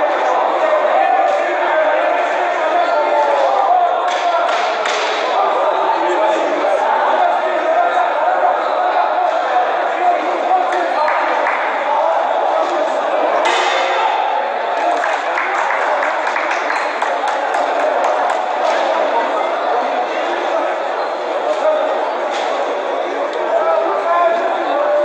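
A crowd chatters and shouts steadily in a large echoing hall.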